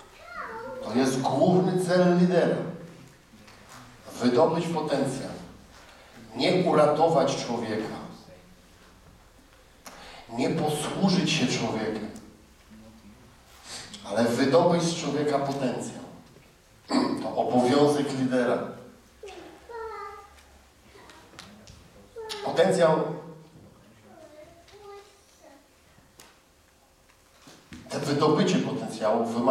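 A middle-aged man speaks with animation through a microphone, in pauses, in a large room.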